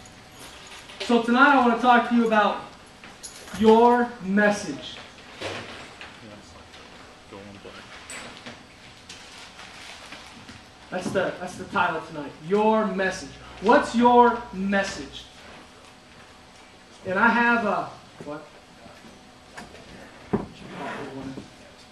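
A man speaks with animation through loudspeakers in a large echoing hall.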